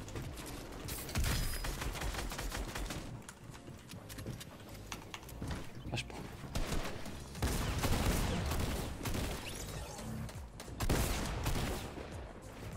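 Game gunshots and building clatter sound in quick bursts.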